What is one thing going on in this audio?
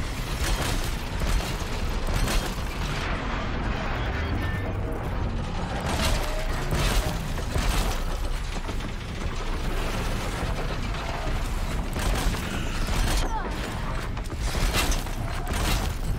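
A bow fires arrows with sharp twangs and whooshes.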